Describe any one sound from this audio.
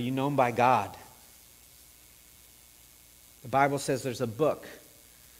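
A middle-aged man speaks calmly into a microphone in a reverberant room.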